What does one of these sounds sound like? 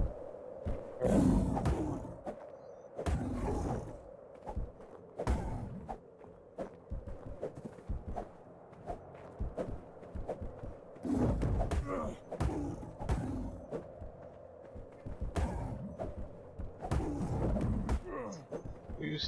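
A large beast grunts and roars in bursts.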